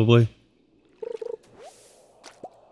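A short game chime sounds as a fish bites the line.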